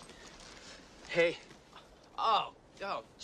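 A young man shouts and grunts in a struggle.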